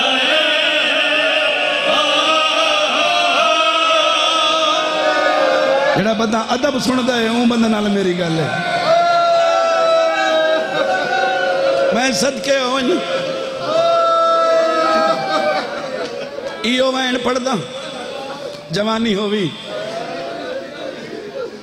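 A man chants a sung recitation loudly through a microphone, heard over loudspeakers.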